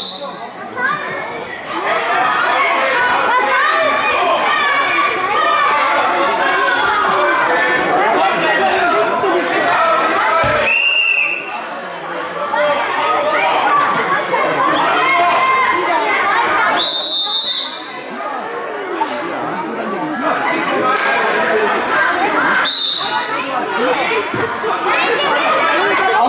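A crowd of children and adults chatters and calls out in a large echoing hall.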